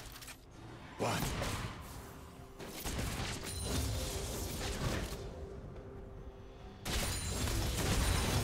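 Game characters' attacks clash with sharp hits.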